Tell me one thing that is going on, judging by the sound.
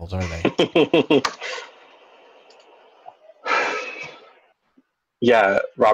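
A young man laughs loudly through an online call.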